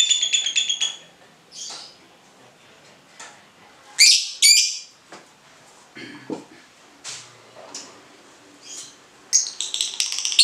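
A lovebird chirps in shrill bursts.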